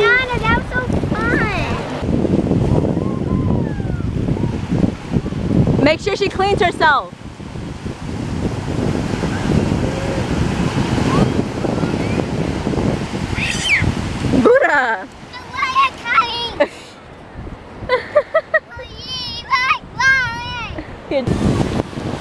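A little girl chatters and squeals in a high voice close by.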